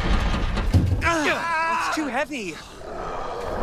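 A young man groans with effort.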